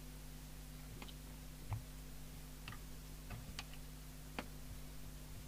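A control knob clicks faintly as a hand turns it.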